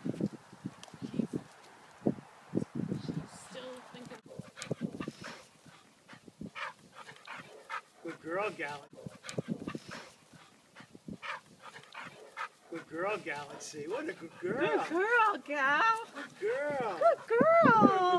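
Dogs growl low while wrestling.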